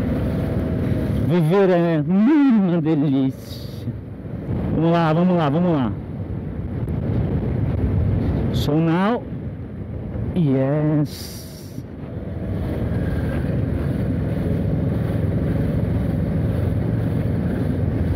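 Wind rushes steadily past a moving motorcycle.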